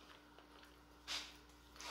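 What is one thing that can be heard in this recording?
A woman makes a smacking kiss sound with her fingers.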